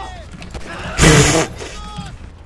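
A single gunshot bangs sharply.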